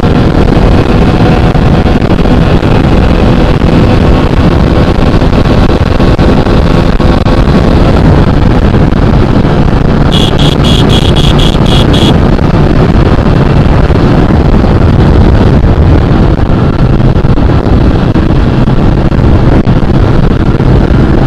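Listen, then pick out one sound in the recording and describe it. Wind roars past the rider at high speed.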